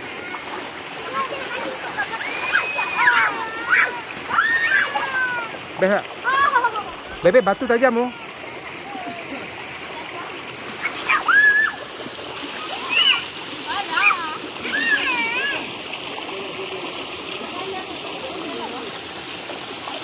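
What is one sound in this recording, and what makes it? A stream of water flows and rushes over rocks.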